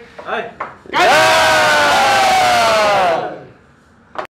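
A group of men shout a toast together in a long cheer.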